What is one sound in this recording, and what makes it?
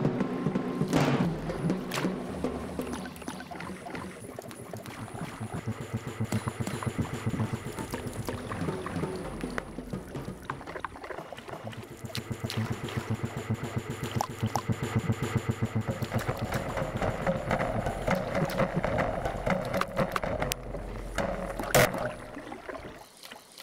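Electronic music with a pulsing beat plays from a mixer and turntables.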